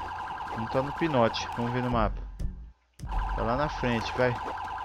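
A police siren wails close by.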